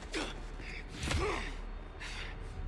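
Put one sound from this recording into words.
A man grunts with strain.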